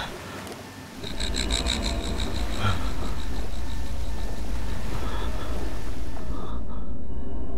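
Stormy sea waves roar through a television speaker.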